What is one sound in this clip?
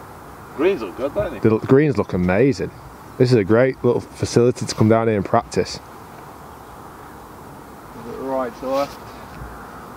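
A man talks calmly into a close microphone, outdoors.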